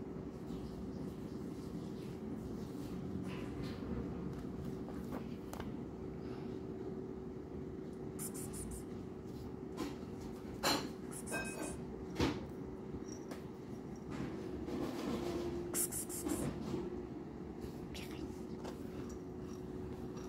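A rug rustles as a hand lifts and shakes it.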